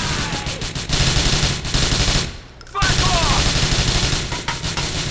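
A submachine gun fires rapid, loud bursts.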